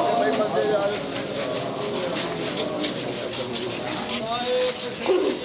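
Many men beat their chests with rhythmic slaps.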